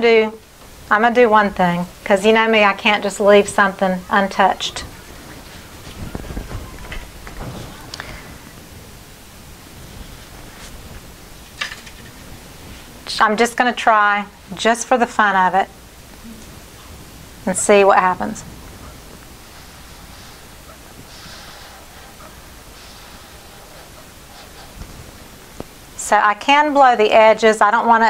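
A woman talks calmly close to the microphone, in short bursts.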